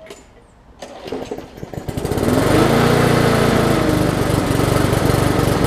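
A lawn mower engine starts and runs loudly.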